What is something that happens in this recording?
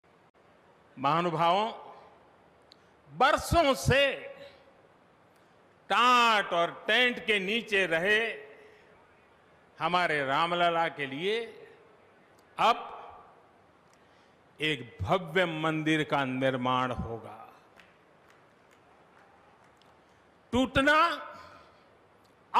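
An elderly man speaks slowly and forcefully through a microphone and loudspeakers, with pauses between phrases.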